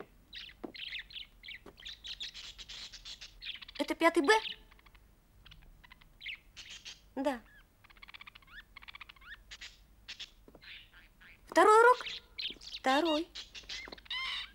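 A young boy speaks up.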